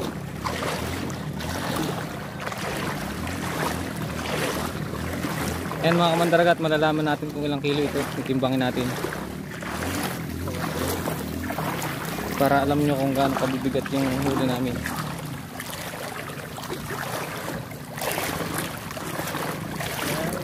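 Water splashes as someone wades through shallow water.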